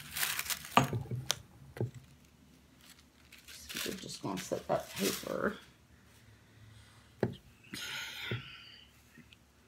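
Plastic and paper rustle as they are handled.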